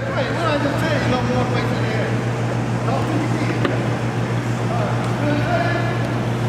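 Young men and spectators talk and call out nearby in a large echoing hall.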